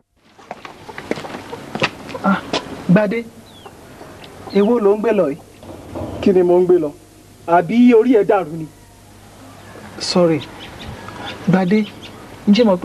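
A man speaks into a microphone, asking questions.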